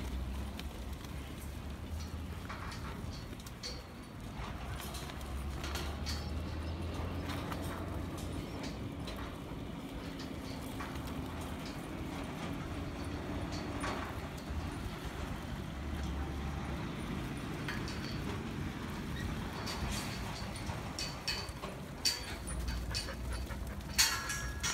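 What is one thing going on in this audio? Sheep shuffle and trot on dirt.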